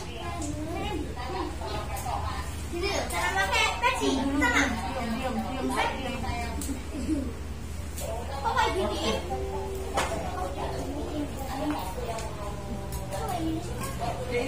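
Several young people talk nearby.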